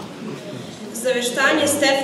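A teenage girl reads out loudly through a microphone.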